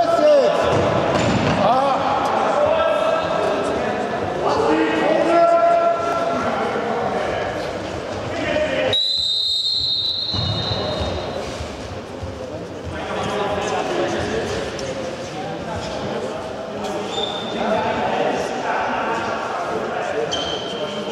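Sneakers squeak on a hard hall floor.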